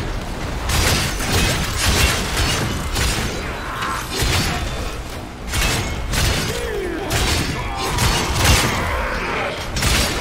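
Energy explosions burst and crackle.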